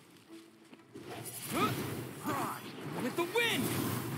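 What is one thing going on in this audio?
A blast of magic bursts with a loud whoosh.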